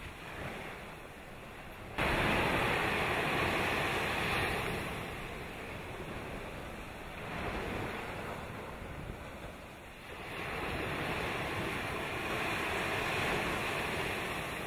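A volcano erupts with a deep, rumbling roar that swells and eases.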